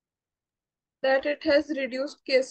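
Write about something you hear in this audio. A woman speaks clearly and calmly through a microphone.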